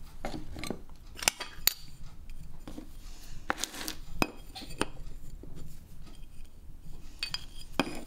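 Glass pieces clink on a table.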